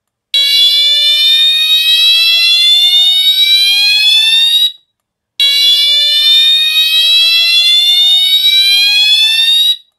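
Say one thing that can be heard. A fire alarm horn sounds a loud, slowly rising whoop, twice with a short pause between.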